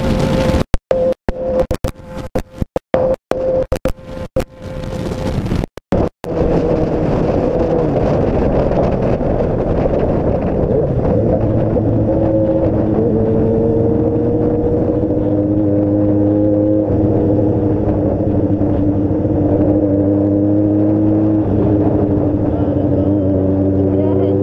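A motorcycle engine hums steadily up close, its pitch shifting as it changes gear.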